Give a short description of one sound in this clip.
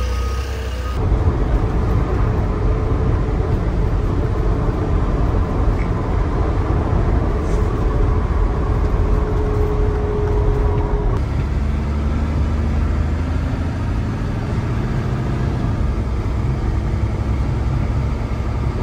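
A truck engine rumbles steadily while driving on a road.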